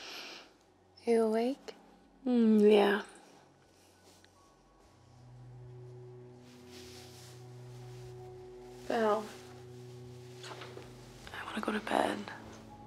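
A young woman speaks softly and tenderly, close by.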